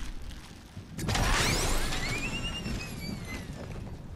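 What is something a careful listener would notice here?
A piñata bursts with a loud pop and sparkling whistles.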